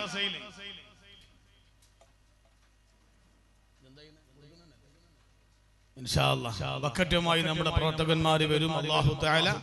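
A man preaches with animation through a microphone and loudspeakers, with pauses between phrases.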